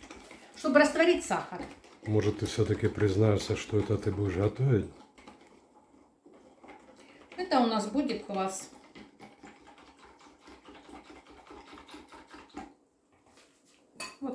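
A whisk clinks against a cup as it stirs.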